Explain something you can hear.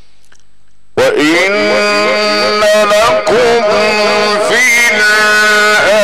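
A middle-aged man chants loudly in a long, wavering voice through a microphone.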